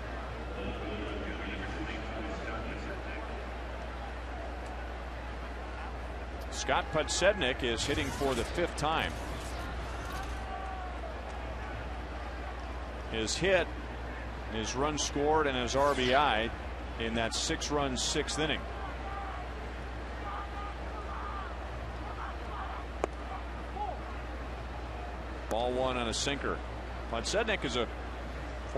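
A crowd murmurs steadily in a large outdoor stadium.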